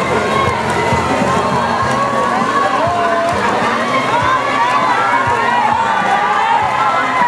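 Swimmers splash and churn through the water.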